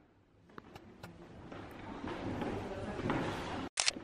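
Footsteps echo across a wooden floor in a large hall.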